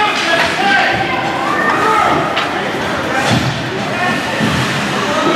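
Young players shout in a large echoing rink.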